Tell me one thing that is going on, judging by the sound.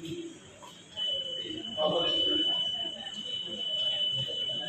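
A long steady electronic beep sounds.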